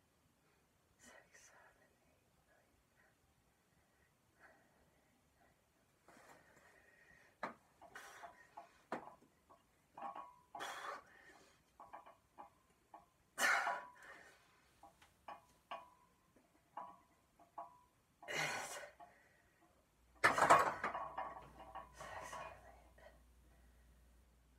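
A young man breathes hard and grunts with effort close by.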